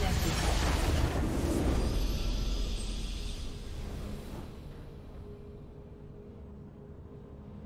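A triumphant victory fanfare swells and then fades.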